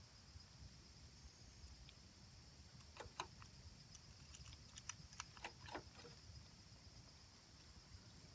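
A chipmunk gnaws and cracks peanut shells up close.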